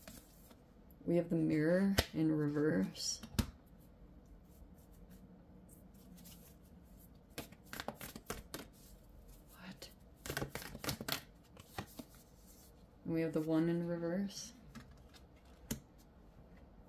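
A card is set down on a hard surface with a soft tap.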